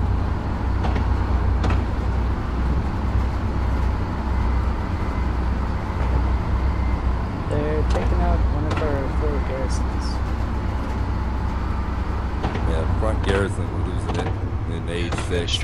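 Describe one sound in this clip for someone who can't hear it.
A tank engine idles with a deep rumble.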